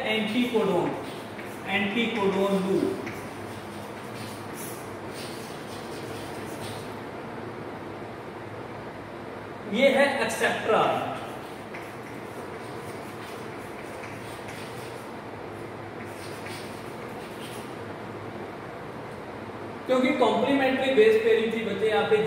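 A man speaks calmly, like a teacher explaining, close to a microphone.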